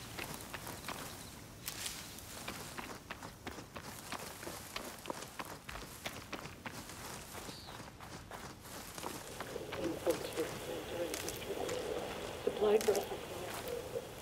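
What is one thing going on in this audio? Footsteps crunch quickly over gravel.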